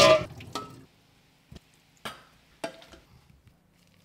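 A metal spoon clinks against a steel pot.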